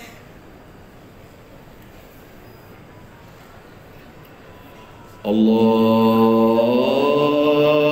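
A large crowd murmurs in a wide echoing space.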